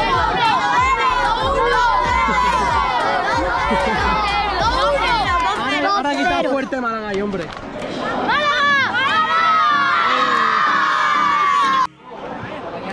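A group of young boys shout and cheer excitedly close by.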